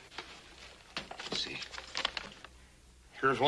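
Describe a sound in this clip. Paper rustles in a man's hands.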